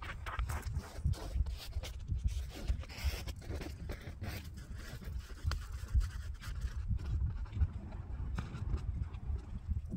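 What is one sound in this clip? Boots crunch into packed snow as a man climbs.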